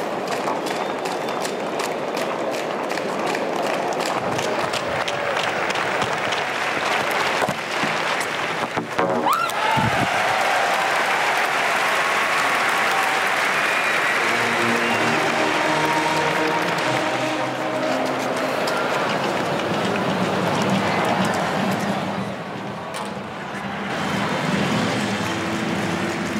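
A large stadium crowd murmurs and claps steadily.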